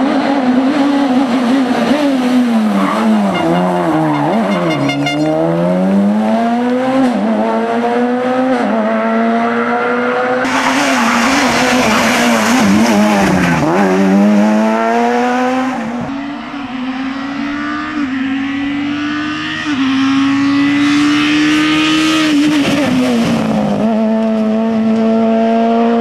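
A rally car engine roars loudly, revving up and down.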